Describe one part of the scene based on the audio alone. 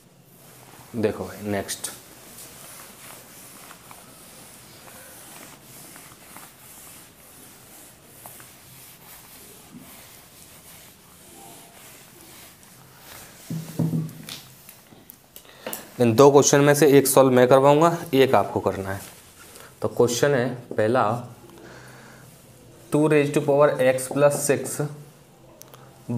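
A man speaks clearly and calmly nearby.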